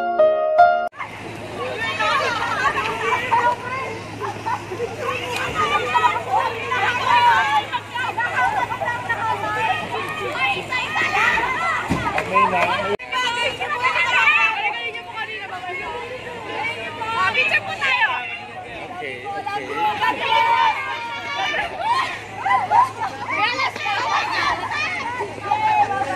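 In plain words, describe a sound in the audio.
Teenage girls shriek and chatter excitedly close by.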